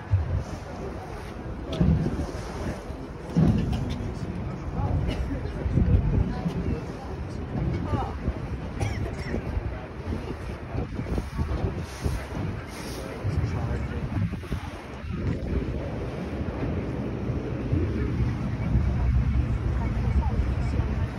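Wind buffets loudly outdoors on open water.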